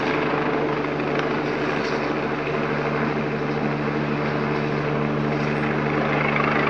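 A helicopter's rotor thuds steadily overhead.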